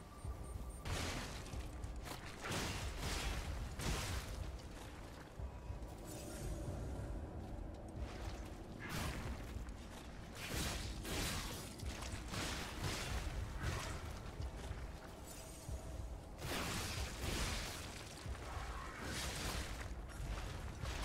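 Weapons clash and slash in a fight.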